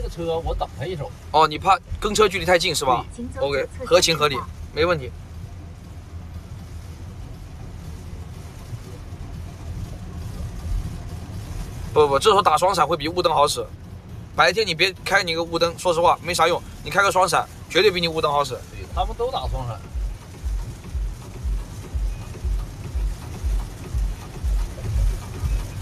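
Rain patters steadily on a car windscreen.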